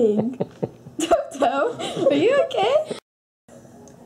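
A young girl laughs and squeals playfully up close.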